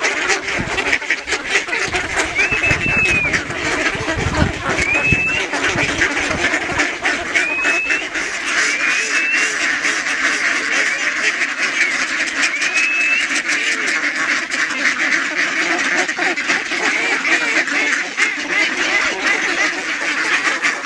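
A large flock of ducks quacks and chatters close by.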